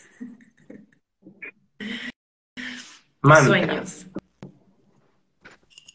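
A man laughs softly over an online call.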